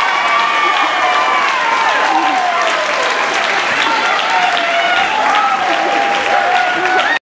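Teenage boys sing together in harmony into microphones, in a reverberant hall.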